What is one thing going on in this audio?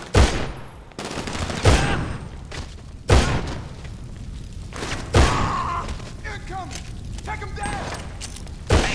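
Gunshots boom loudly and echo.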